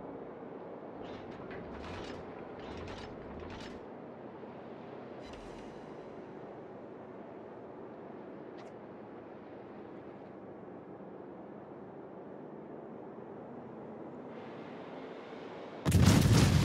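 Heavy guns fire in quick bursts of booming blasts.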